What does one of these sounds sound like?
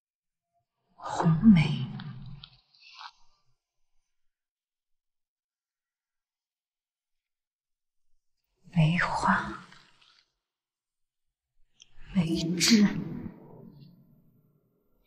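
A young woman speaks nearby in short, tense phrases.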